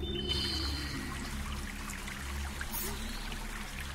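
Water trickles and splashes in a small stream.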